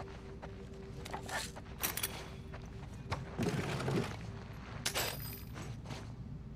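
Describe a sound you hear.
Items rustle and clatter on a shelf.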